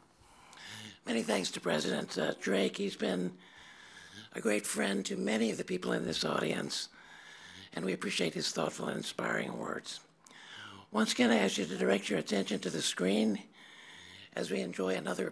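An elderly man speaks calmly into a microphone outdoors.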